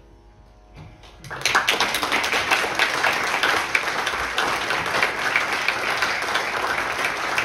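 A stringed instrument plays a melody.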